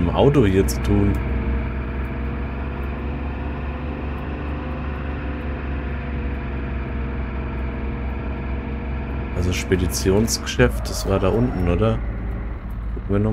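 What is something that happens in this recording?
A car engine hums steadily as a car drives.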